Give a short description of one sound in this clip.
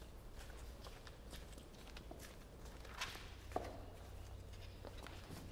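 Footsteps tap on a hard floor in a quiet, echoing room.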